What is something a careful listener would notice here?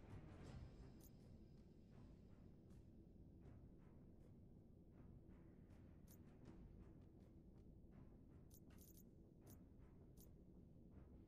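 Short menu clicks tick as a selection moves.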